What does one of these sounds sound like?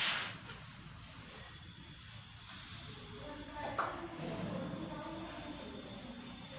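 A cloth rubs across a chalkboard.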